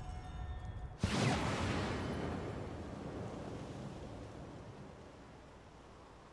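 A loud burst booms and slowly fades away.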